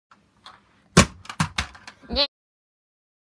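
A plastic toy thuds onto a carpeted floor.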